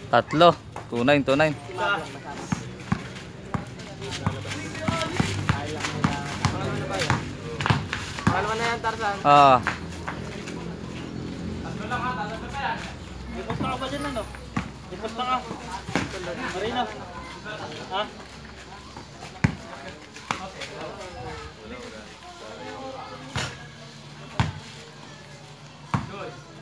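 A basketball bounces on concrete outdoors.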